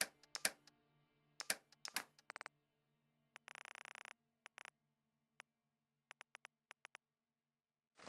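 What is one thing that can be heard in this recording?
Short electronic clicks tick in quick runs.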